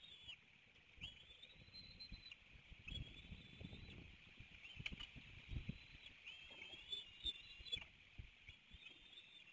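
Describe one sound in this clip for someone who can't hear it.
Twigs rustle as eagles shift and feed in a nest.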